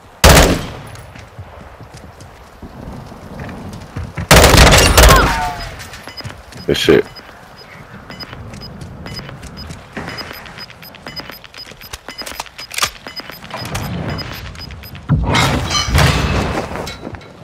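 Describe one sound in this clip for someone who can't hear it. Gunfire rattles off in short, loud bursts.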